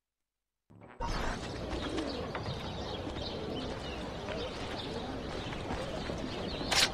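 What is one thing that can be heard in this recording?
Footsteps walk across cobblestones.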